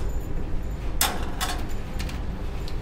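A tray slides along a metal rack and knocks into place.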